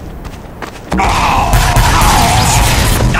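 An explosion booms and rumbles.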